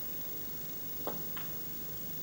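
A cue strikes a snooker ball with a short, sharp click.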